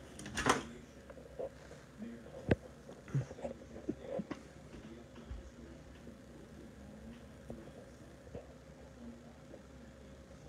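Orchestral music plays faintly from a television speaker.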